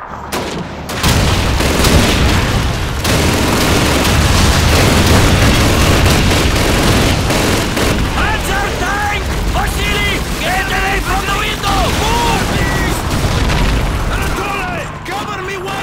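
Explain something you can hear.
A mounted machine gun fires in bursts.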